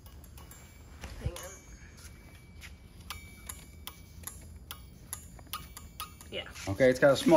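A metal caliper clicks against a steel part.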